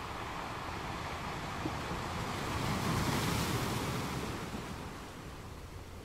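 Ocean waves break and crash with a swelling roar, then ease off.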